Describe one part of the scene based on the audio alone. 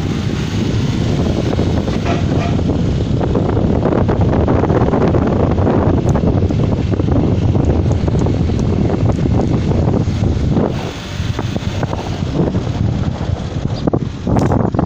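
A car engine hums and road noise rumbles steadily from inside a moving car.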